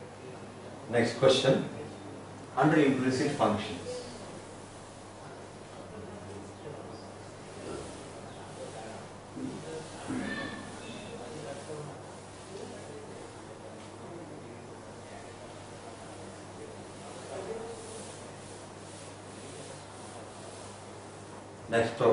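A duster rubs across a chalkboard.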